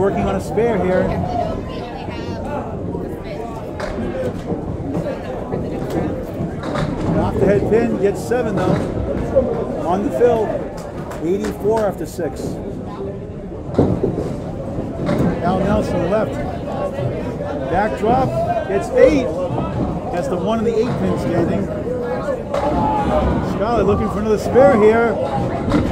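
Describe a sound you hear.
Bowling balls roll down lanes and crash into pins.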